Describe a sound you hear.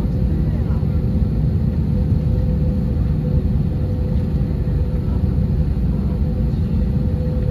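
The jet engines of an Airbus A321 idle with a steady hum and low rumble, heard from inside the cabin.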